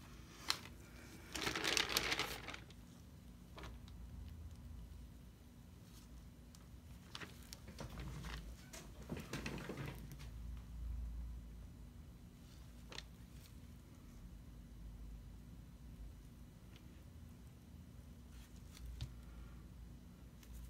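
A wooden canvas frame bumps and scrapes on a table as it is tilted by hand.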